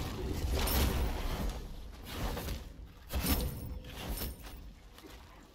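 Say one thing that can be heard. Magic spells whoosh and burst in short loud bursts.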